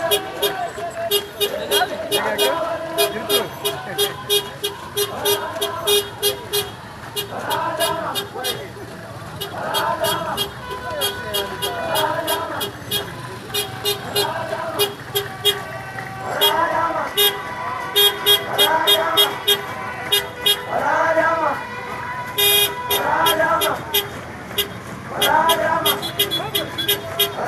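Many feet march in step on a paved road.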